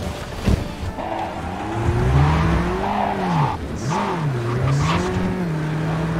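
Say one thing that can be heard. Tyres screech as a car skids and drifts.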